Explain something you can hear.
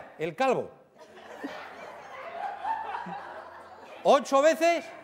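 A studio audience chatters and laughs in a large room.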